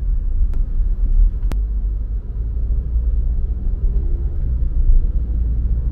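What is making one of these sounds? Traffic hums in the street outside.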